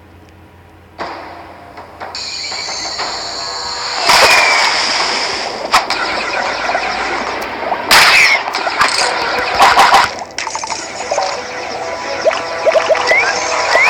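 Lively electronic game music plays.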